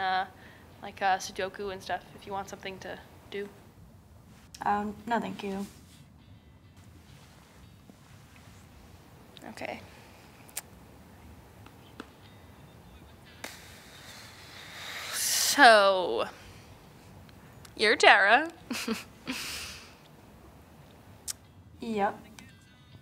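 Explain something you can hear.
A young woman speaks quietly and sadly, close by.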